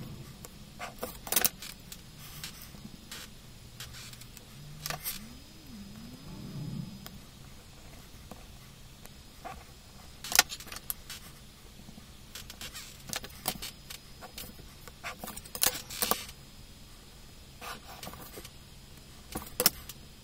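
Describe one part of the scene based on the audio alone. A pencil scratches across paper.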